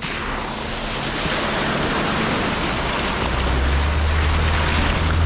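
An engine rumbles low and grows louder as it comes close.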